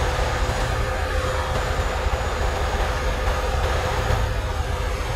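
Tyres hum on the road.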